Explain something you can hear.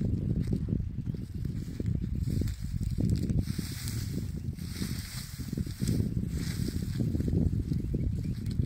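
Dry plants rustle and crackle as they are pulled from the ground.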